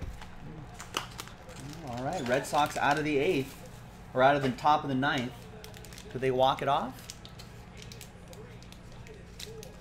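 A foil wrapper crinkles as hands handle it.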